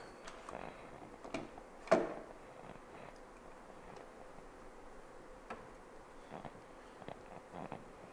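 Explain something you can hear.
Wood knocks and clunks as a frame is handled.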